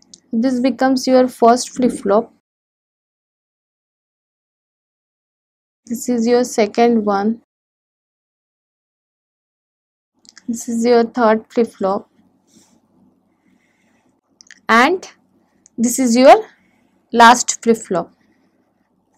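A young woman speaks calmly and clearly into a close microphone, in short phrases with pauses.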